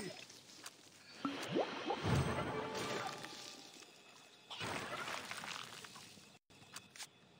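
Game spell effects whoosh and chime during combat.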